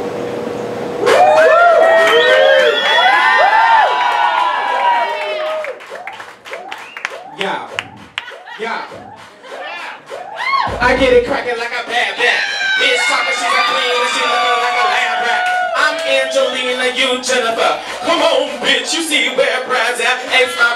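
A crowd claps and applauds.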